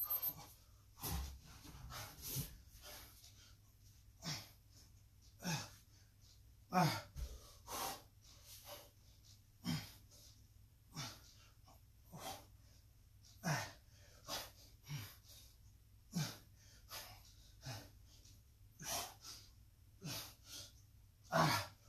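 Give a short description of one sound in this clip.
A man exhales sharply and rhythmically as he exercises.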